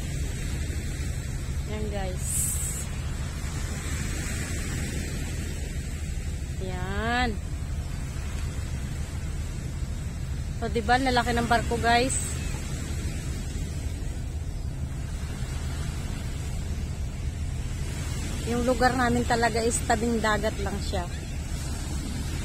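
Small waves lap and wash against a pebbly shore.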